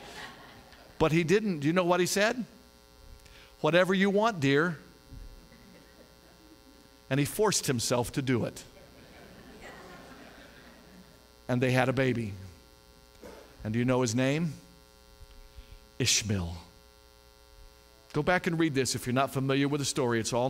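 A middle-aged man speaks with animation through a microphone and loudspeakers in an echoing hall, pausing between phrases.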